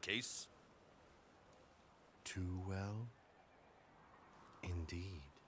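A man speaks calmly and deliberately, close by.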